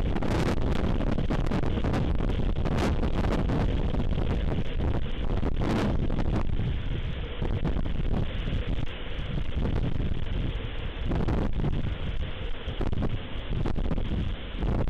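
Wind blows hard and gusts outdoors.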